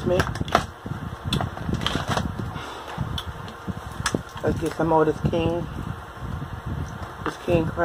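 A woman cracks and pulls apart king crab legs close to a microphone.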